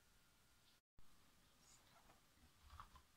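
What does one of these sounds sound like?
A cardboard lid slides off a box.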